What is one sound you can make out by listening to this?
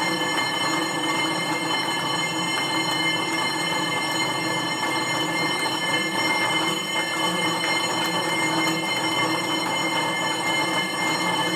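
An exercise bike's flywheel whirs steadily.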